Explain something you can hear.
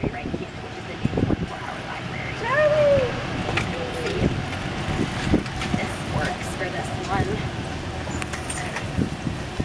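A small cart rattles and knocks as it drives along.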